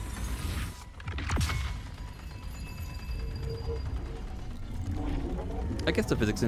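A magical energy burst whooshes and shimmers.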